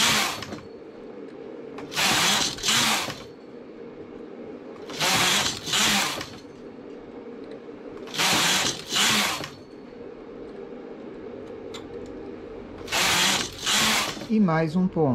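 A knitting machine carriage slides across the needle bed with a loud rushing whir.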